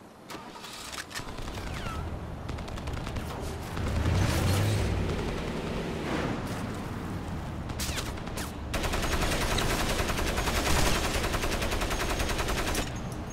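A vehicle engine rumbles and revs as it drives.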